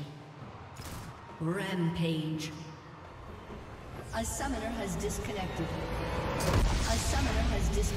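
Game spell effects crackle and whoosh.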